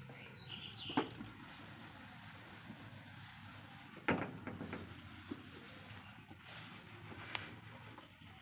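Plates clatter and knock together as they are washed.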